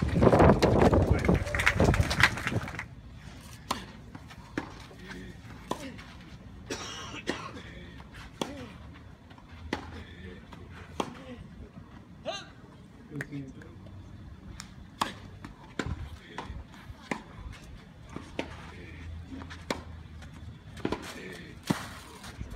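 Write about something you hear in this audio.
Tennis balls are struck with rackets in a steady rally.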